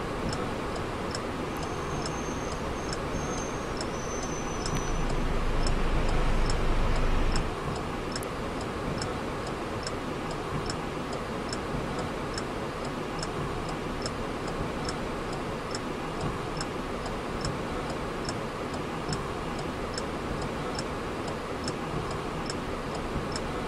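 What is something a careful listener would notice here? A bus engine rumbles steadily, swelling briefly and then settling to an idle.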